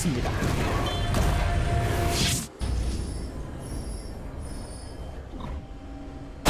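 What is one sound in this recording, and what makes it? Game battle effects crash and whoosh, loudest at first and then quieter.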